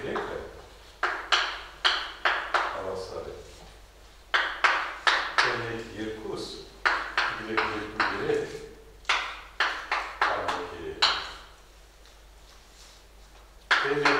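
Chalk taps and scrapes on a blackboard in quick bursts.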